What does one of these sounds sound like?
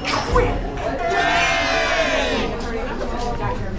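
A man cheers loudly and excitedly.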